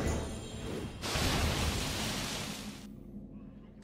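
A bright fanfare of game effects rings out as a new turn begins.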